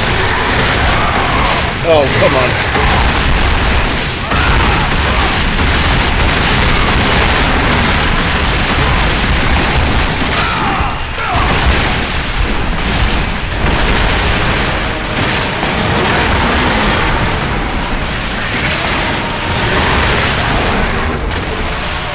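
Game weapons whoosh and clash against stone.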